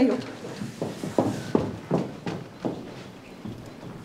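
Footsteps walk away across a wooden floor.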